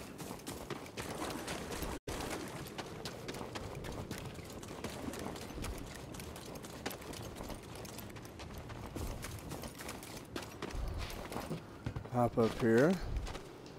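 Footsteps run over stone and gravel.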